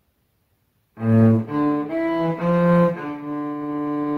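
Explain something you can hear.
A cello plays a slow melody nearby.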